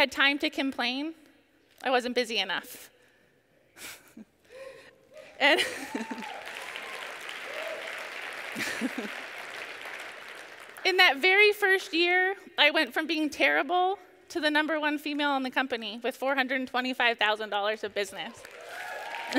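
A woman speaks with animation through a microphone in a large hall.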